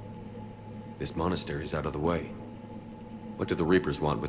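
A man speaks in a low, steady voice.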